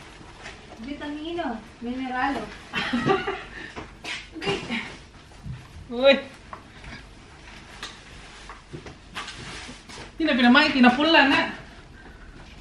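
Women talk nearby in a casual, lively way.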